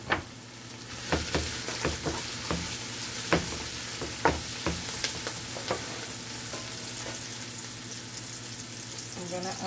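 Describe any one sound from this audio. A wooden spoon scrapes and stirs in a metal pot.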